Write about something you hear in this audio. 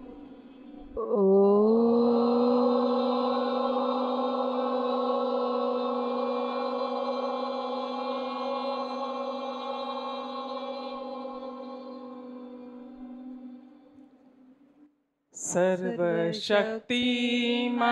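A woman sings long, slow held notes through a microphone.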